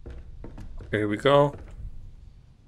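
A man lets out a loud exclamation.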